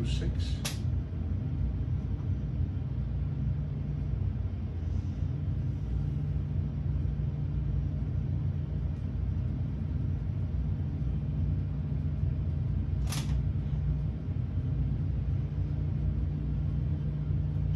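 A jet engine rumbles with a steady low drone.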